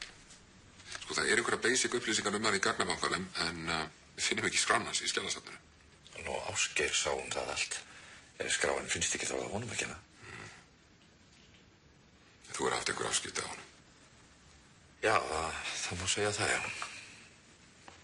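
A middle-aged man speaks calmly and quietly.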